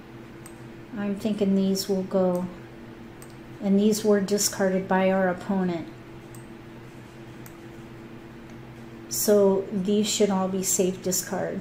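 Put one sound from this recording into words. A middle-aged woman talks calmly into a microphone, close by.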